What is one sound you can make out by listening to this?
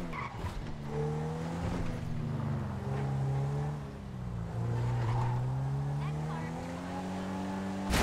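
A car engine revs and hums steadily, rising and falling in pitch.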